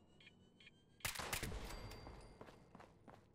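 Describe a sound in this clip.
A gun fires a single loud shot that echoes briefly.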